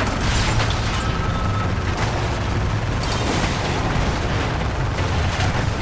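A car engine roars.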